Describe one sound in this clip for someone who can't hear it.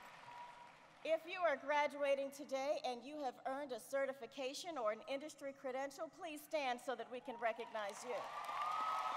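A woman speaks calmly into a microphone, heard through loudspeakers in a large echoing hall.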